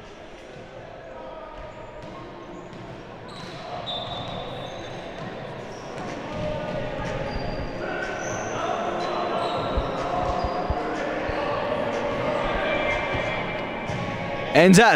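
Sneakers squeak on a hardwood floor in an echoing gym.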